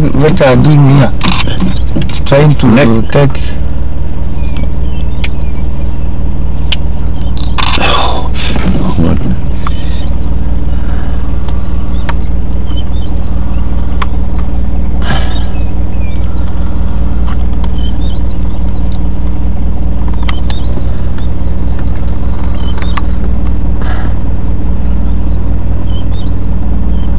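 A vehicle engine idles with a steady low rumble.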